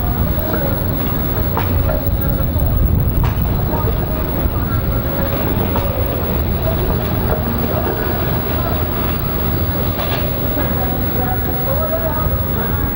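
A tram rumbles and squeals along its rails.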